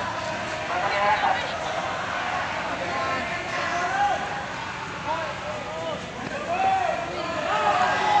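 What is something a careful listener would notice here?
A crowd of marchers chatters and calls out nearby, outdoors.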